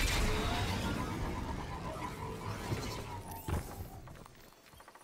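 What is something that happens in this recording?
A hover vehicle's engine roars loudly, then fades away.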